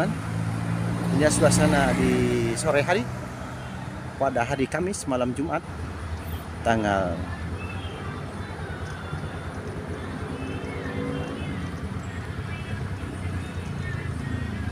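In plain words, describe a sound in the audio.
Traffic rumbles steadily along a street.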